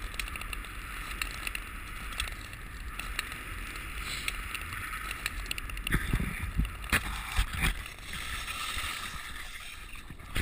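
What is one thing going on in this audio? Wind rumbles against a nearby microphone outdoors.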